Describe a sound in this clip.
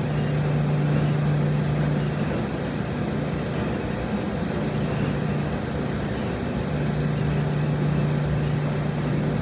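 Clothes rustle as they are loaded into a front-loading washer.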